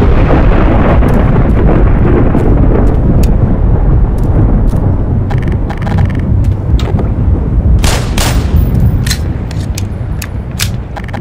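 Footsteps clang on a metal pipe with a hollow echo.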